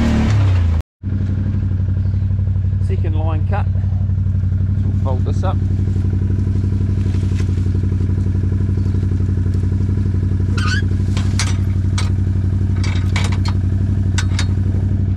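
An all-terrain vehicle engine idles steadily close by.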